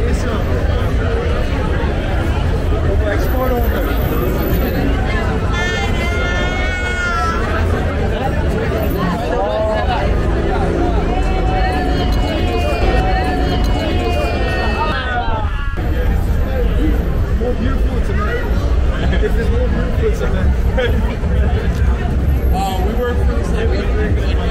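A lively crowd chatters loudly outdoors all around.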